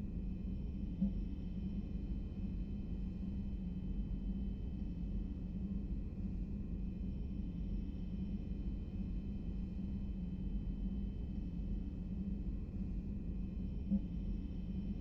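A menu selection clicks softly.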